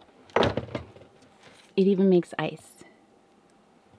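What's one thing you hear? A plastic ice tray clatters onto a counter.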